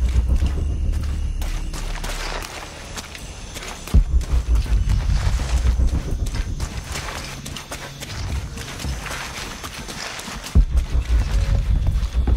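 Footsteps crunch and rustle through dense leaves.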